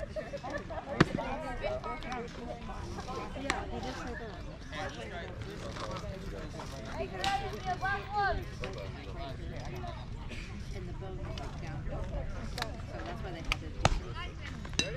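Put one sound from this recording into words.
A ball smacks into a catcher's glove.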